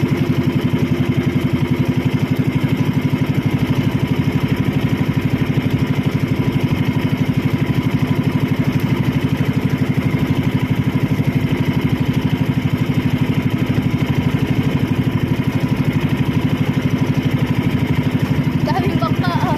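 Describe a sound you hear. A boat engine chugs steadily and loudly close by.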